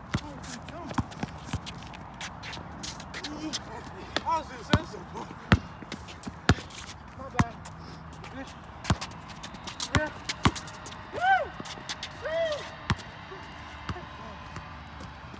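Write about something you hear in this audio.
A basketball bounces sharply on concrete.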